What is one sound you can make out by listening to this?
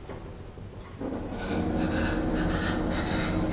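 Lift doors slide shut with a rattling rumble.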